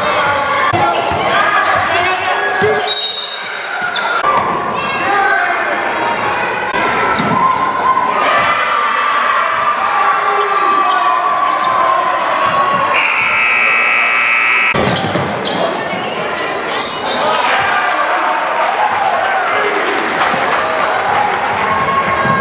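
A crowd chatters and cheers in an echoing gym.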